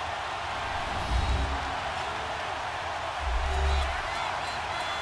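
Football players collide with heavy thuds.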